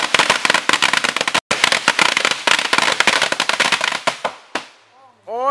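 Firecrackers crackle and pop rapidly.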